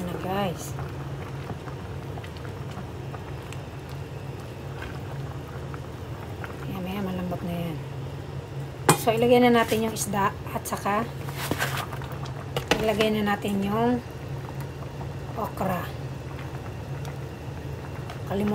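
A wooden spoon stirs and scrapes in a pot of stew.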